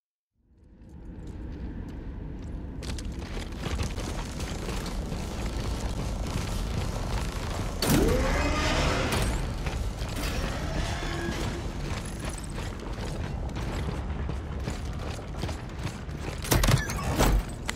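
Heavy boots clank on metal grating.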